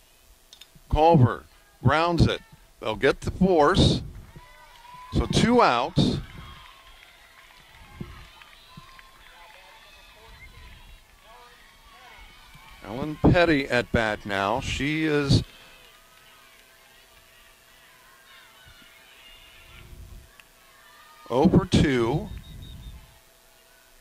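Young women shout and chant a cheer loudly outdoors.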